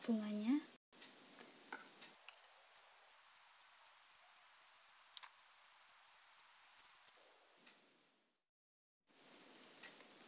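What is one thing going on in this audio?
Fingers rub and rustle soft yarn close by.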